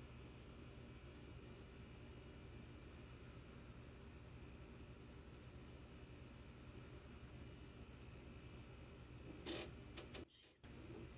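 Wasps buzz softly at a nest.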